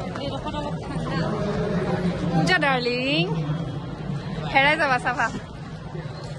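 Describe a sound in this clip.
A young woman speaks and exclaims excitedly close by.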